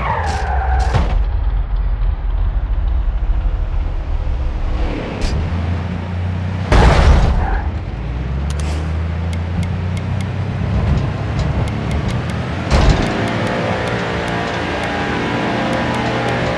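A race car engine idles with a low rumble.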